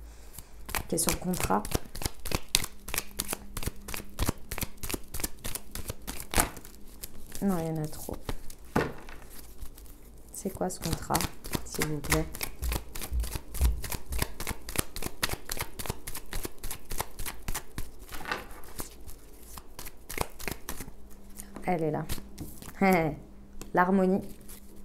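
Cards are shuffled, with quick crisp flicks and taps.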